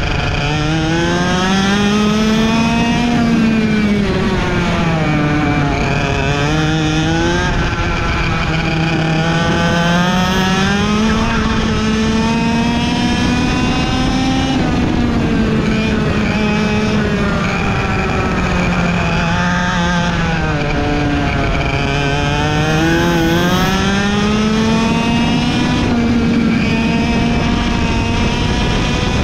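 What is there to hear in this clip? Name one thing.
A kart engine buzzes loudly close by, its pitch rising and falling as the kart speeds up and slows for the corners.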